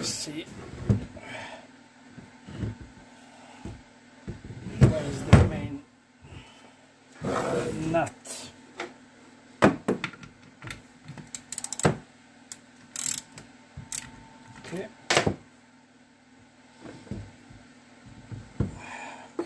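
Metal parts of an engine casing clunk and scrape as they are handled on a bench.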